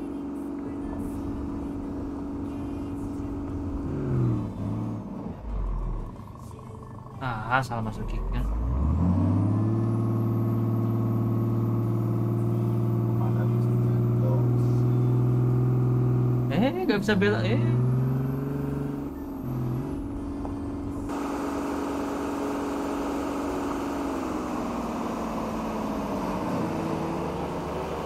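A truck engine rumbles steadily and changes pitch as gears shift.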